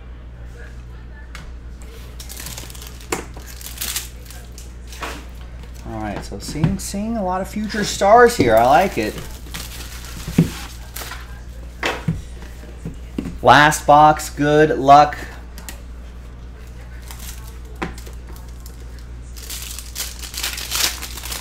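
Foil wrapping crinkles and rustles in hands.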